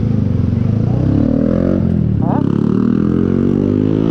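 A scooter engine revs up, rising in pitch.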